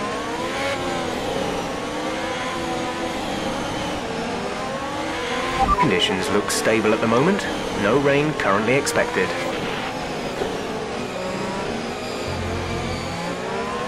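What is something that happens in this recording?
Other racing car engines whine nearby.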